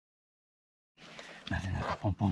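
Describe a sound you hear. A hiking pole taps on stone.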